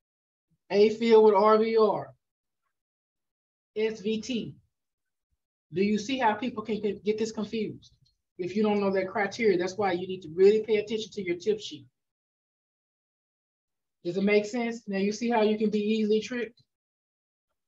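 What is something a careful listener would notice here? A woman speaks calmly through an online call.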